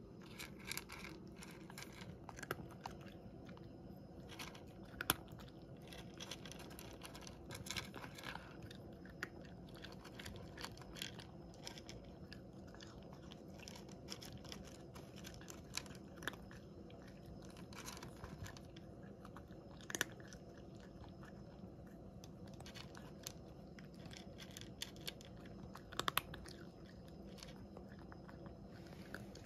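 A cat crunches dry food close by.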